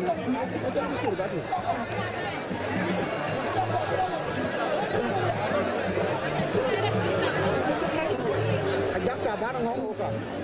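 A large crowd of people sing and shout loudly outdoors.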